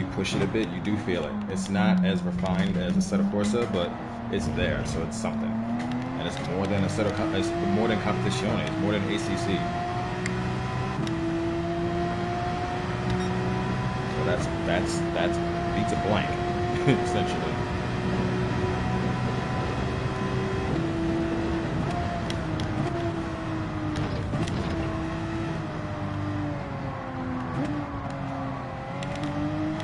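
A racing car engine roars, its pitch rising through the gears and dropping into corners.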